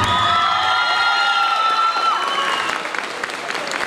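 A crowd cheers and screams in a large echoing hall.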